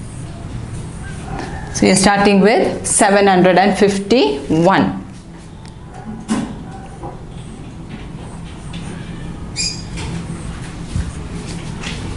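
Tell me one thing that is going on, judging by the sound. A marker writes on a whiteboard.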